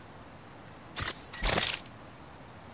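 Metal gear clatters as it is picked up.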